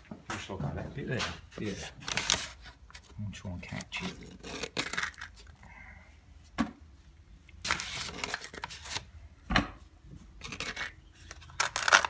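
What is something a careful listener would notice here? A plastic scraper scrapes and taps against grimy metal.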